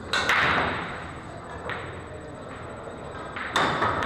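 A billiard ball rolls softly across the table.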